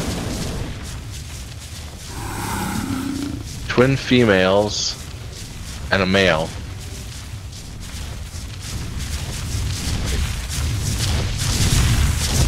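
A flare fizzes and crackles steadily.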